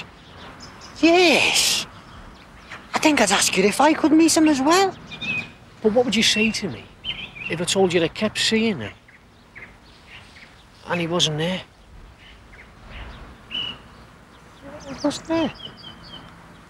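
A second young man answers with animation up close.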